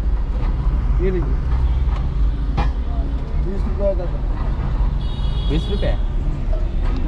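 Car horns honk in short bursts.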